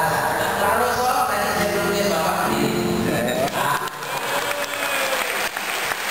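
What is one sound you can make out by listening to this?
A crowd of women cheers and shouts in a large room.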